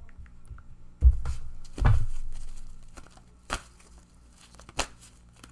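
Playing cards are shuffled with crisp riffling snaps.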